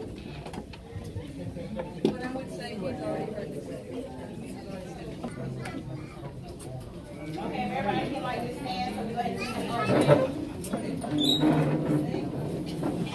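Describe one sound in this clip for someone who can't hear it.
A crowd of adults chatters throughout a room.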